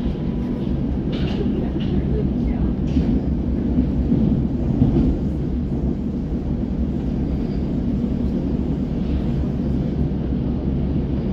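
A vehicle rumbles steadily, heard from inside as it drives.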